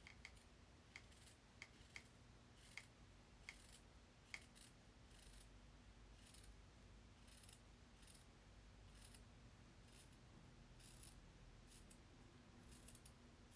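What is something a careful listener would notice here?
Scissors snip through fabric with soft clicks.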